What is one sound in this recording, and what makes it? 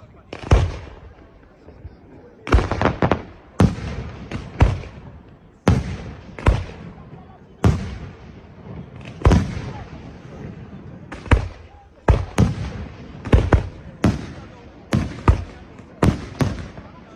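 Fireworks crackle and fizz after each burst.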